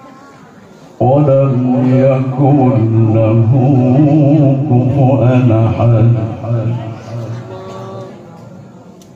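An elderly man chants in a long, drawn-out voice through a microphone.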